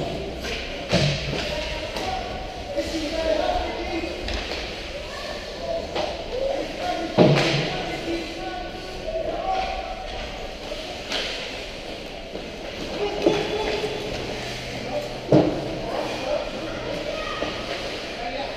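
Young players shout to each other across the rink.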